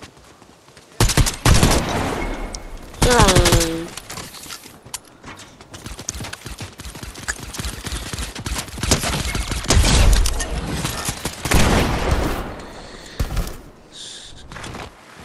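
Video game footsteps patter on grass and stone.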